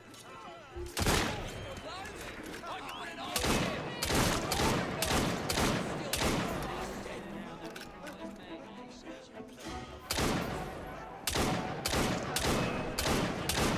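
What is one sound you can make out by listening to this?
Pistol shots ring out in quick bursts, echoing loudly.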